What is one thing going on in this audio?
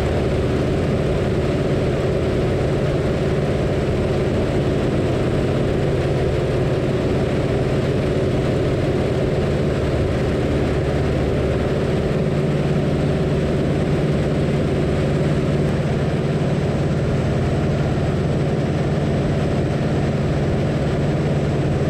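A propeller engine drones loudly and steadily.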